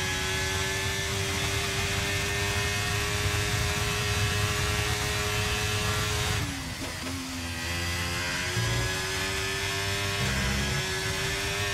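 A racing car engine screams at high revs, drops sharply as the car brakes and shifts down, then climbs again.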